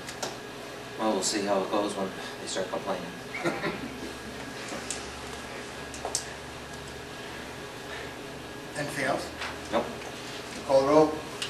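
A man speaks into a microphone in a calm, measured voice, in a room with some echo.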